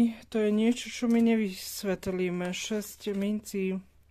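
Playing cards slide and tap softly onto a table.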